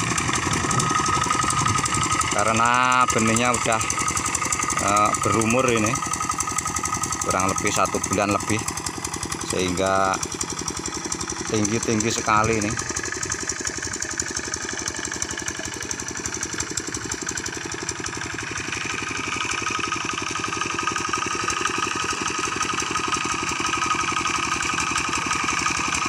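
A walking tractor engine chugs steadily nearby.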